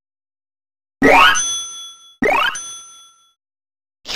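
Chiming game tones ring out and fade.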